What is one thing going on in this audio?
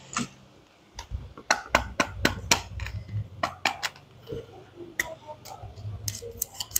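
Small plastic parts click and clack as hands handle a toy case.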